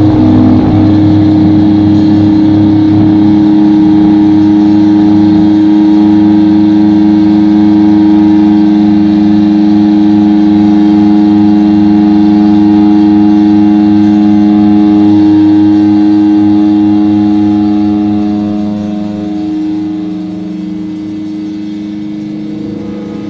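A bass guitar drones low and heavy.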